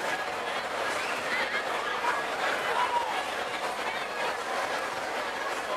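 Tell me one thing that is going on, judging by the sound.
A busy outdoor crowd chatters and murmurs all around.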